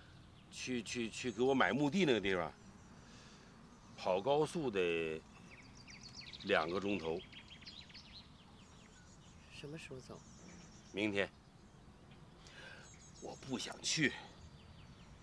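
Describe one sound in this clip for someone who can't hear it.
An elderly man speaks quietly and sadly, close by.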